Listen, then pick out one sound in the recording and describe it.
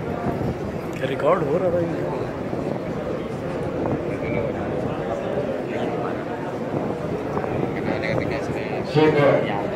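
A man's voice rises loudly above the crowd.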